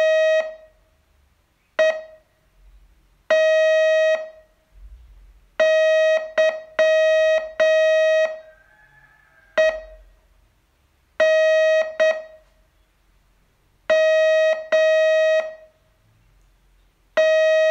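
A radio beeps out Morse code in short and long tones.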